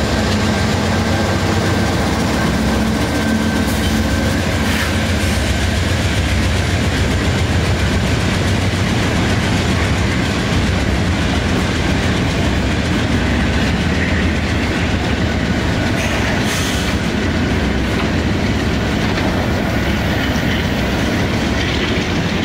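Heavy train wheels clatter along the rails.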